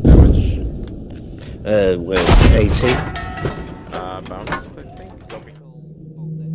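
A tank shell explodes with a loud, booming blast.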